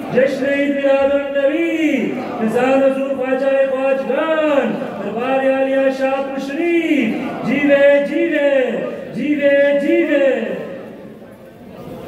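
A man chants in a drawn-out melodic voice through a loudspeaker.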